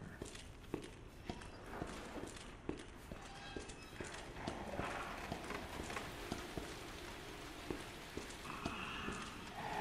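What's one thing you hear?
Footsteps clank on metal stairs.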